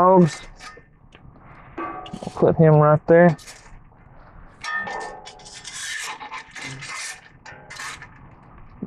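A metal shovel scrapes through embers and ash.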